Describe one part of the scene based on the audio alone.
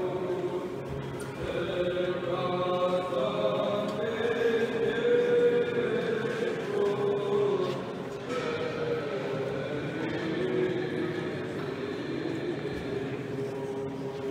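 Men chant slowly together in a large echoing hall.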